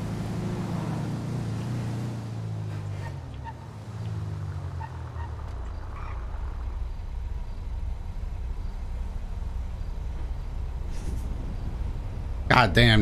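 A van engine hums and changes pitch as it drives along.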